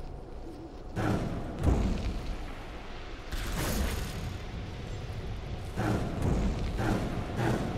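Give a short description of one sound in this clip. Magic spell effects burst and whoosh in a game.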